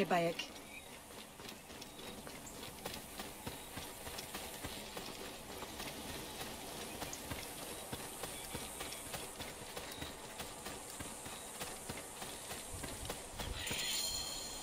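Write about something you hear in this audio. Footsteps run quickly over dirt and grass.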